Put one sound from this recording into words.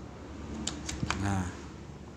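A small switch clicks.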